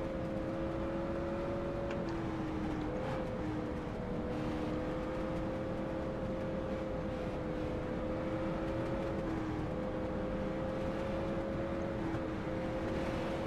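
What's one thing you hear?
A race car engine drones steadily at high revs, shifting pitch slightly.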